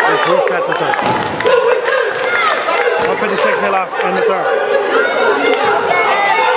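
A basketball thuds against the floor.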